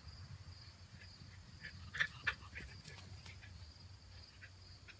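Puppies give short high yips while playing.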